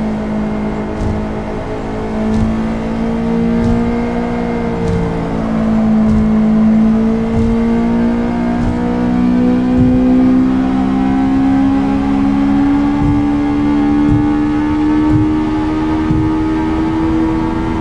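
A car engine hums steadily and slowly rises in pitch as the car speeds up.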